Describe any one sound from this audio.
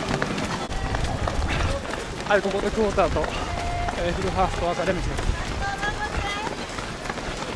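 Many runners' feet patter on pavement close by.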